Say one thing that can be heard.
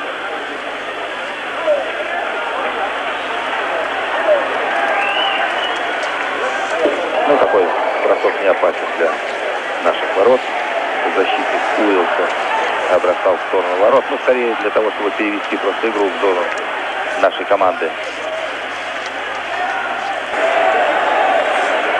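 A large crowd roars and cheers in a big echoing arena.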